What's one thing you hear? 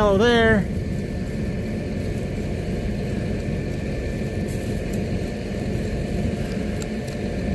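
Dry straw rustles and crackles under a hand.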